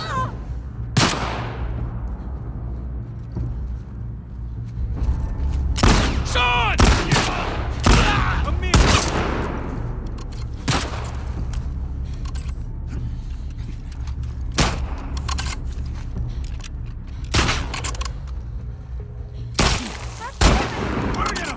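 Pistol shots crack loudly, each followed by a short echo.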